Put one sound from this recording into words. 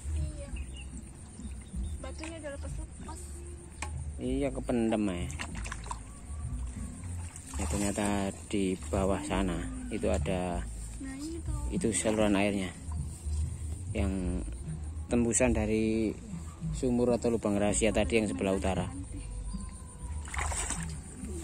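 Water splashes as a woman wades through a muddy pond.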